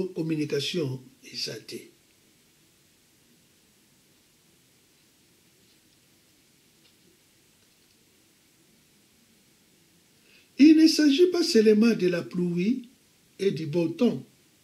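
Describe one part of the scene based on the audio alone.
An elderly man speaks calmly and close by, with long pauses.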